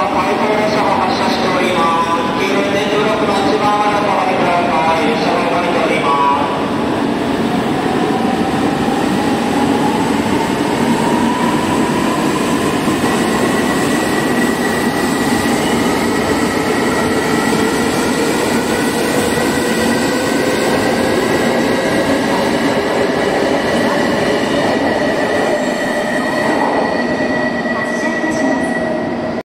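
A train rumbles along the platform as it pulls away.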